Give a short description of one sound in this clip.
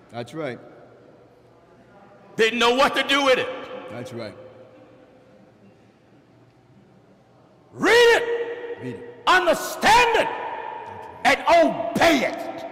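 A man preaches with passion into a microphone, in an echoing hall.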